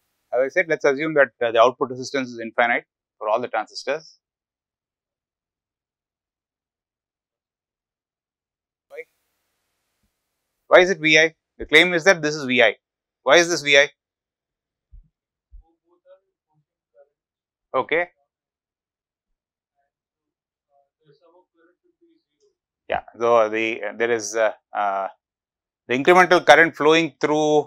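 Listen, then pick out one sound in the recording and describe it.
A middle-aged man speaks calmly and slowly into a close microphone, with long pauses.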